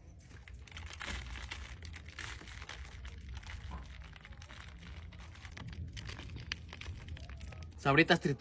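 Grated cheese patters onto corn.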